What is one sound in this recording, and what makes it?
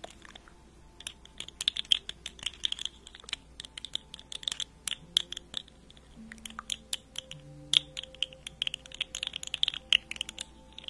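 Fingernails tap and click rapidly on a hard object close to a microphone.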